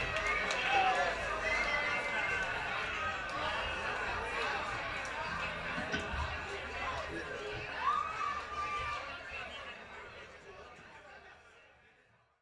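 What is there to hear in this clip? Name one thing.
A crowd chatters and cheers, then fades away.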